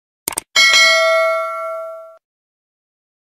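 A small bell chimes once and rings out.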